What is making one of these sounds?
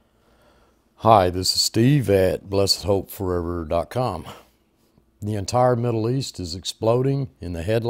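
An elderly man speaks calmly and close up.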